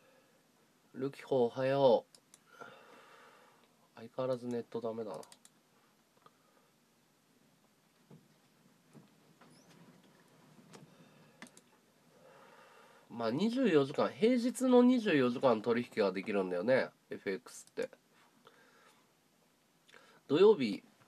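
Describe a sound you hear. A man talks close to a phone microphone in short bursts.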